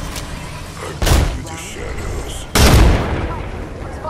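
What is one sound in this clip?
A rifle fires loud blasts.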